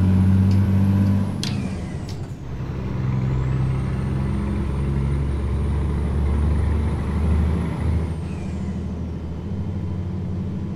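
A truck engine hums steadily, its pitch rising and falling with the gears.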